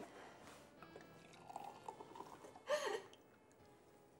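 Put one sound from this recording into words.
Wine glugs as it pours into a glass.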